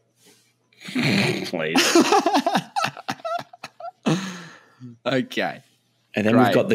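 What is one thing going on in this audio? A second man laughs and talks close to a microphone.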